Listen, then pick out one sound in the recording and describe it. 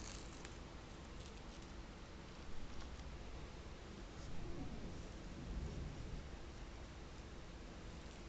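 Fabric rustles as a sheet is handled.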